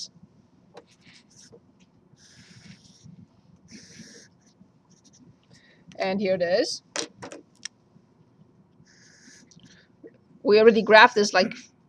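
A marker squeaks across paper.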